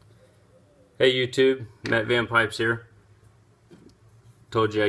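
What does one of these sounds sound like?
A man speaks calmly and close up, in short bursts.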